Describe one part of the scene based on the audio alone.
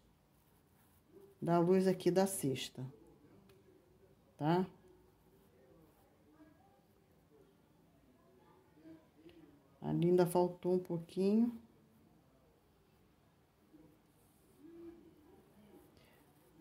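A paintbrush brushes softly across cloth.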